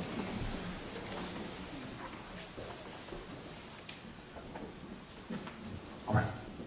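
A man speaks calmly to a gathering in a room with a slight echo.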